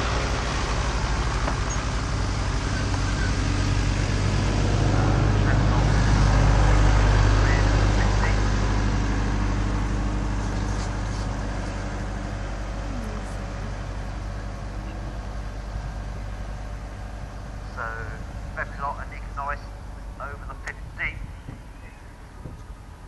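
Wind rumbles steadily outdoors, easing off over time.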